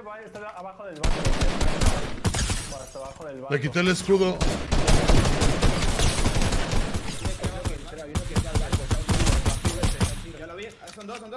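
Rifle shots crack in a video game.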